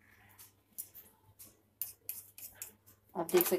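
A knife taps lightly on a hard surface.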